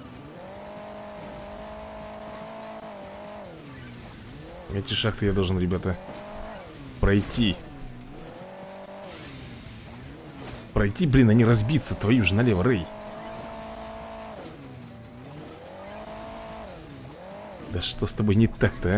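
A car engine revs up and down steadily throughout.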